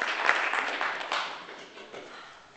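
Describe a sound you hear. A guitar is strummed close by.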